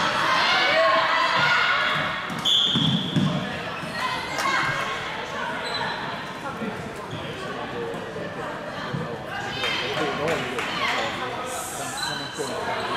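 Sticks clack sharply against a ball on a hard floor.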